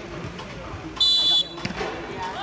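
A referee's whistle blows one sharp blast.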